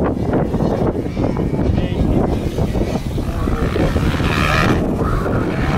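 Motocross bikes rev and buzz in the distance.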